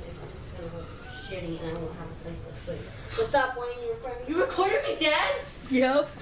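Young women talk and laugh loudly nearby.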